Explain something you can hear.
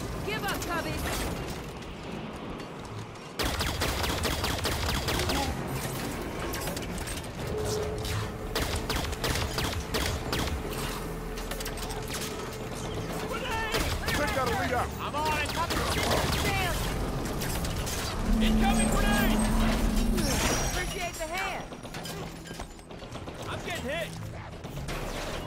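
Rapid energy gunfire crackles in bursts.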